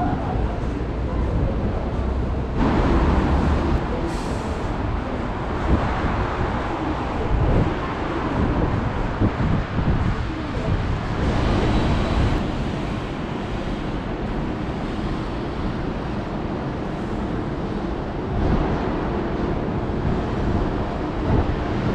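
City traffic hums steadily below, outdoors.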